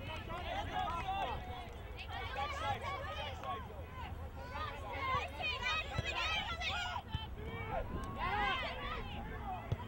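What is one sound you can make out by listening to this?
A crowd of spectators shouts and cheers outdoors, with many voices overlapping.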